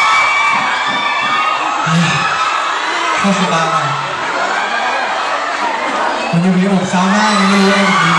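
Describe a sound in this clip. A young man speaks with animation through a microphone and loudspeakers.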